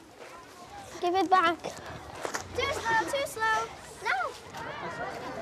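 Children shout and laugh outdoors.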